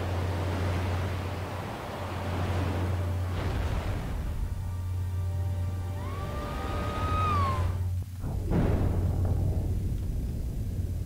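Water rushes and splashes as a ship plunges into the sea.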